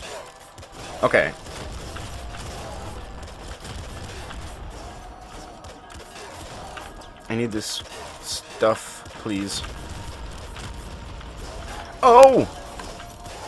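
Video game gunfire crackles in rapid bursts.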